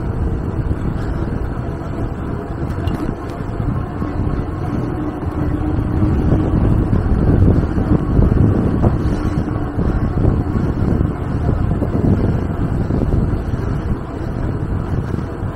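Tyres hum on smooth pavement.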